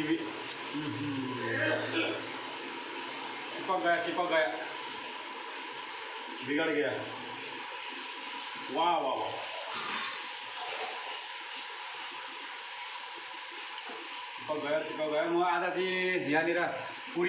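A middle-aged man talks casually close by.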